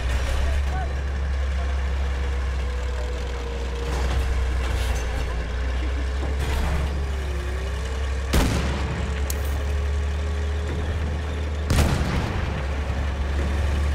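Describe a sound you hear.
A heavy armoured vehicle's engine rumbles steadily as it drives.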